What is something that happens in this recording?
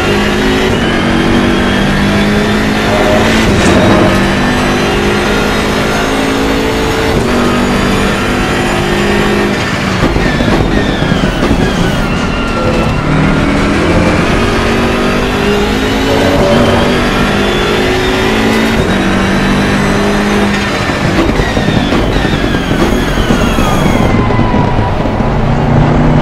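A racing car engine roars loudly, rising and falling in pitch as the gears shift.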